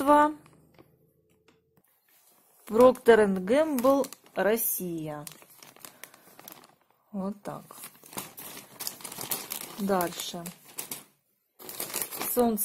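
A plastic package crinkles and rustles as it is handled.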